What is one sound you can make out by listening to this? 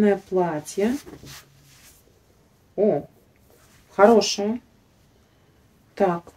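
Fabric rustles as a garment is handled.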